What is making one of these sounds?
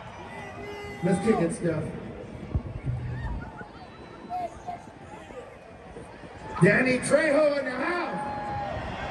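A man shouts into a microphone through loudspeakers in the open air.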